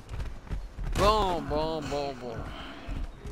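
A large deer bellows close by.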